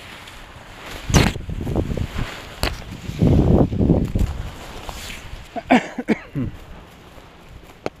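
A man speaks loudly over the wind.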